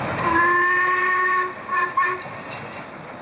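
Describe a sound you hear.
A steam locomotive whistles.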